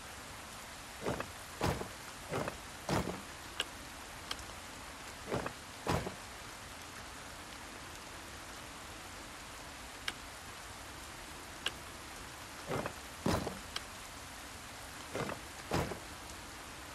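Puzzle pieces turn with short clunking knocks.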